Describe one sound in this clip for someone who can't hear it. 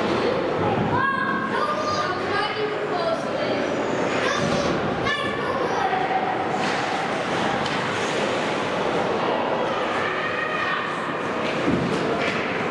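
A hockey puck cracks sharply against a stick.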